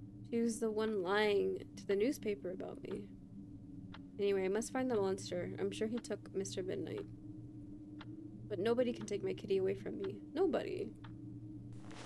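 A young woman reads aloud with animation, close to a microphone.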